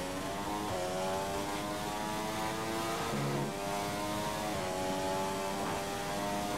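A racing car engine screams at high revs.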